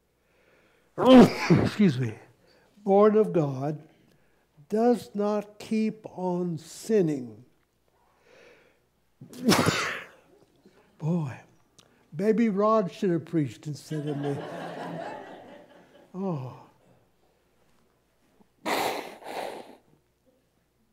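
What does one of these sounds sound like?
An elderly man coughs.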